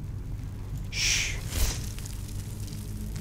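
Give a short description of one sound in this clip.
An electric spell crackles and sparks.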